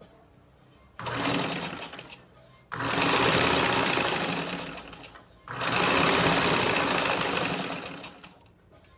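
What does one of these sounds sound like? A sewing machine whirs in fast bursts as it stitches.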